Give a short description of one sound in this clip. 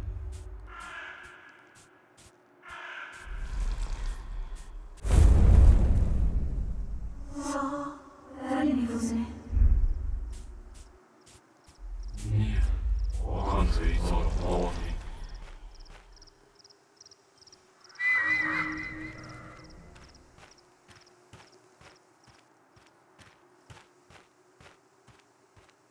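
Footsteps crunch softly on a forest path.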